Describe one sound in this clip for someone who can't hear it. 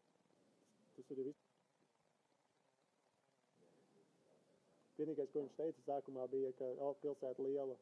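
A young man talks close by, calmly.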